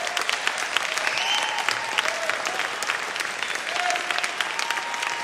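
A jazz big band plays in a large hall.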